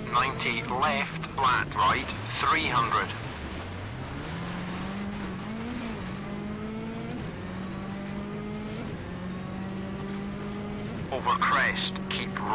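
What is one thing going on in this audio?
A rally car engine revs and climbs through the gears.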